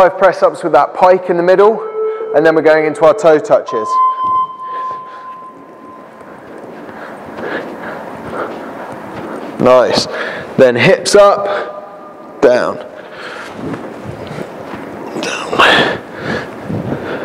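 A man speaks clearly and with energy, close to a microphone.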